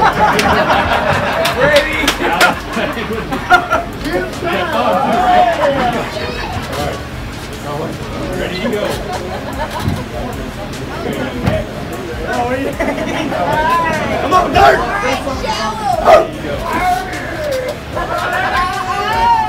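A crowd of men and women talks and cheers loudly.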